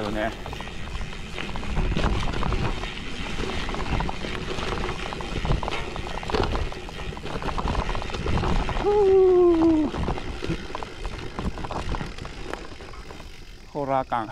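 Bicycle tyres rumble and crunch over a bumpy dirt trail with dry leaves.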